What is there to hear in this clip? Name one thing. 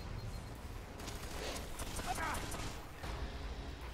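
Gunfire rings out in a quick burst.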